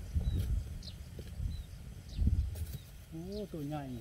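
A metal digging bar thuds into soil.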